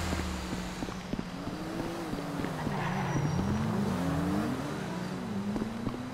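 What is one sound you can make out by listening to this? A car engine hums as the car approaches and passes.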